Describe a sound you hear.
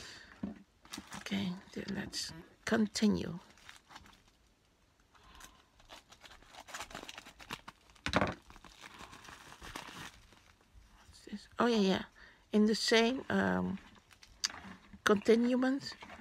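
Plastic packets crinkle and rustle as they are handled.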